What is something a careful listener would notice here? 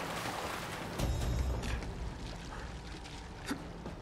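A man splashes out of water.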